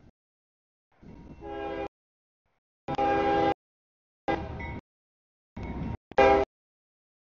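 A train horn blows in long blasts, growing louder as the train draws near.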